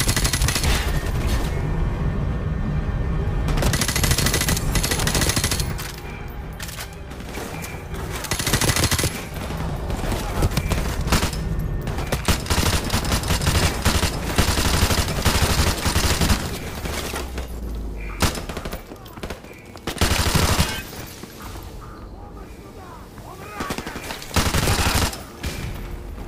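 Rifles fire in loud rapid bursts, echoing in an enclosed space.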